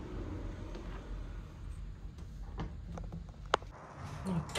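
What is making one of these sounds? A door clicks shut.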